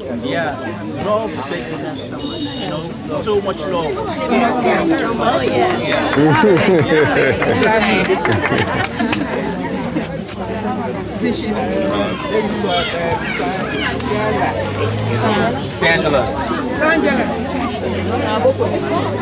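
A crowd of people chatters and sings outdoors.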